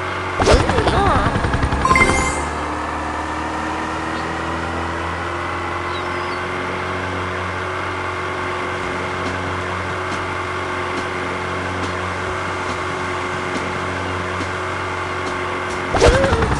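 A small boat engine drones steadily.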